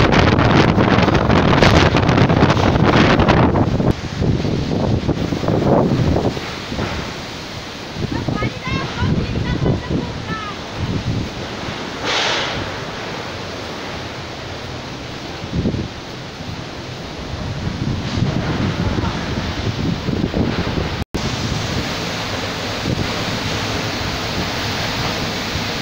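Heavy rain lashes down steadily.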